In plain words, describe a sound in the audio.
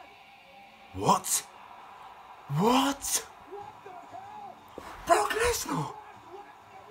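A young man shouts loudly in bursts.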